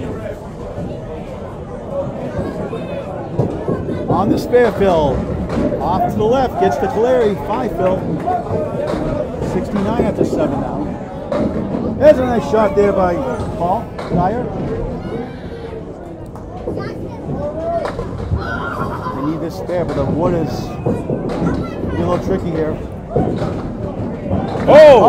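Several people chatter loudly in an echoing hall.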